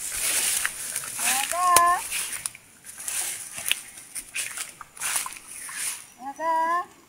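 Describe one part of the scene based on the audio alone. A young macaque rustles through leafy plants.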